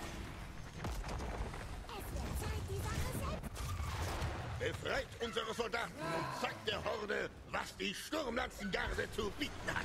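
Video game fighters clash with rapid hits and spell effects.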